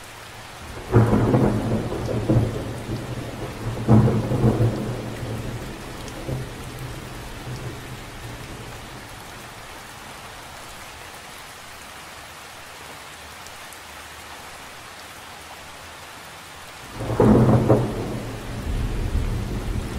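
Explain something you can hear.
Rain patters steadily onto a lake.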